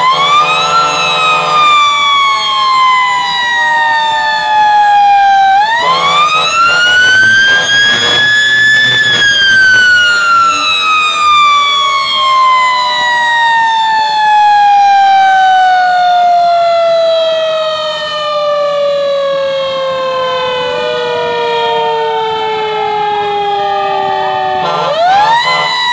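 A siren wails loudly close by, slowly rising and falling.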